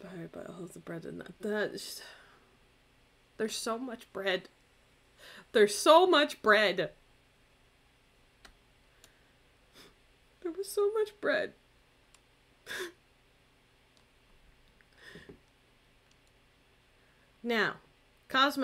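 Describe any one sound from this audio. A young woman talks with animation into a close microphone, in short bursts with pauses.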